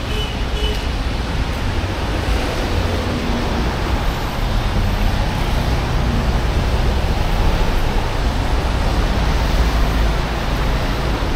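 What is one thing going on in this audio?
City traffic rumbles steadily along a wet road.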